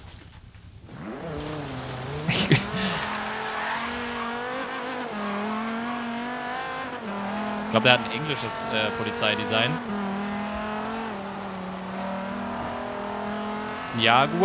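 A car engine roars and revs high, shifting through gears.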